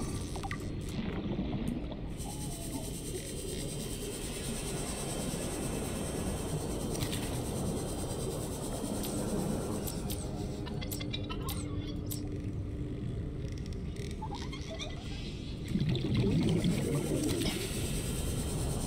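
A small underwater vehicle hums steadily with a low, muffled whir.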